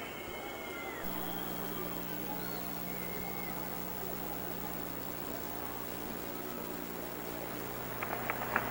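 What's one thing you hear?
A crowd murmurs softly in the distance.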